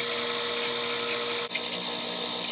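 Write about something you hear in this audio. A bench grinder whirs and grinds metal with a steady hiss.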